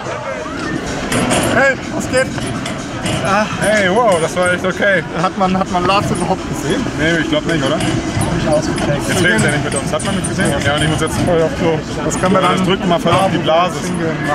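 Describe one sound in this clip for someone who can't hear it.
A young man talks with animation close by, outdoors.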